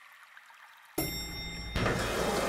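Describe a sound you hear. Louder game music starts abruptly.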